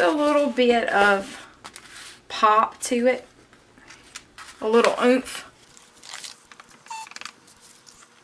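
An ink pad dabs and taps against paper.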